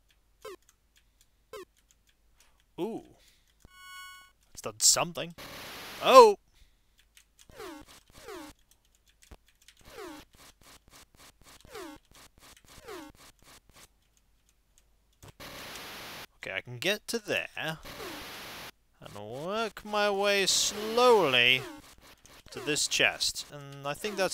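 Chiptune game sound effects blip and chirp in short bursts.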